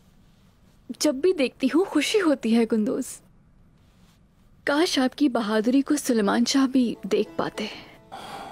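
A young woman speaks calmly and warmly nearby.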